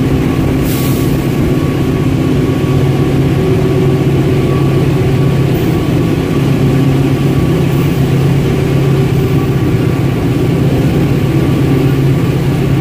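A train rumbles loudly and steadily through a tunnel.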